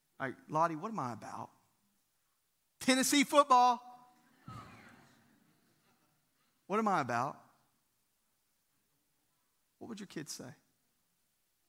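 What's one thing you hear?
A man speaks through a microphone with animation, in short bursts with pauses, in a large hall.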